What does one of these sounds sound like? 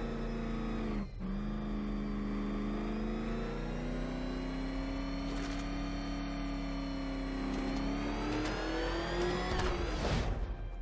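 A powerful car engine hums steadily and rises in pitch as it speeds up.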